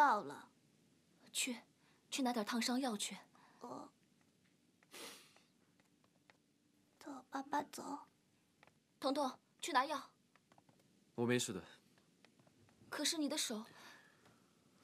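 A young woman speaks urgently and anxiously, close by.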